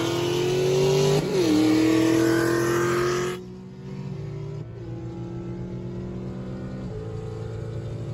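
A car engine revs hard, rising in pitch, briefly drops at a gear change, then eases off to a steady hum.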